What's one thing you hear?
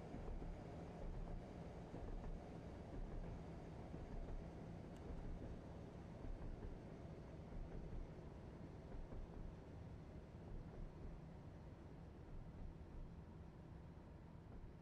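Train wheels clatter rhythmically over rail joints.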